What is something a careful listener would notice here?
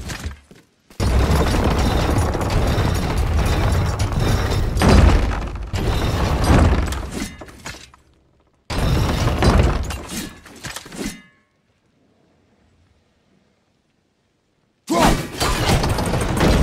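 A wooden wheel creaks and rattles as it is turned.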